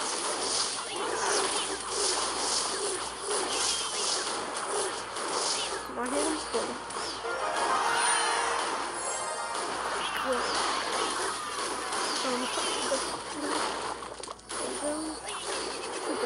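Game sound effects of clashing and small explosions ring out in quick bursts.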